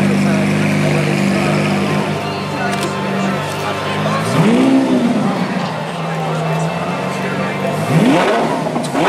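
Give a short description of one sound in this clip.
A sports car engine idles with a deep steady rumble.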